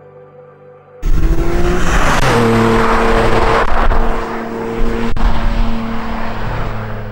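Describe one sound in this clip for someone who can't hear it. A sports car engine roars loudly as the car races closer.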